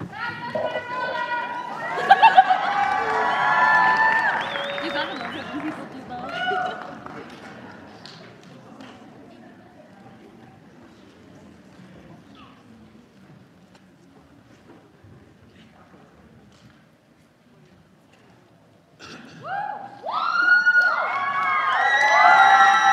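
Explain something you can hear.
Musicians play slow gliding notes in a large hall, with quiet pauses between phrases.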